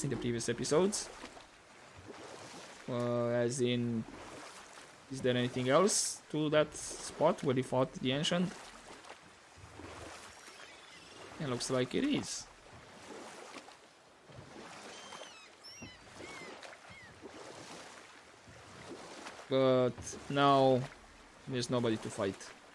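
Oars splash steadily through water.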